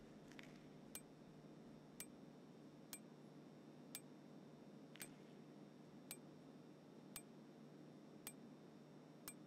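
A menu selection ticks with short, regular clicks about once a second.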